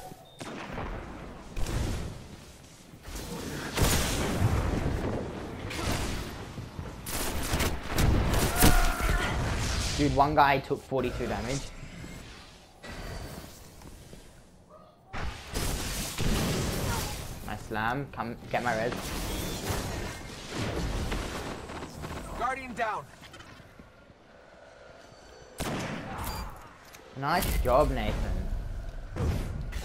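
Gunfire bursts and booms in quick rounds.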